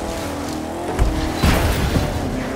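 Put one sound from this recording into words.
Tyres thump and crash onto a paved road.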